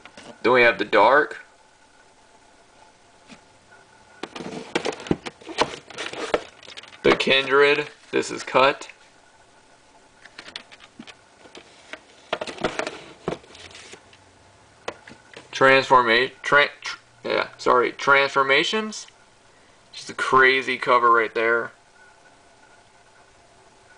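A plastic tape case is handled and set down on a shelf.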